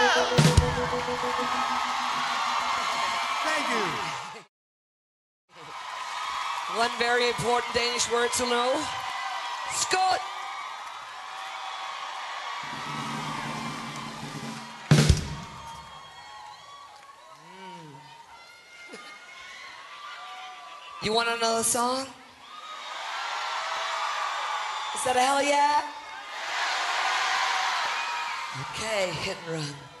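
A crowd cheers and applauds in a large hall.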